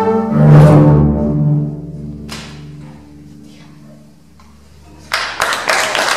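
An orchestra holds a loud final chord that rings out and fades in a large echoing hall.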